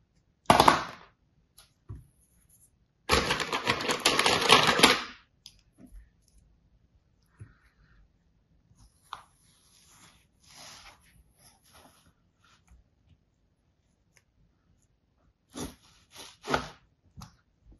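Kinetic sand crumbles and rustles between fingers.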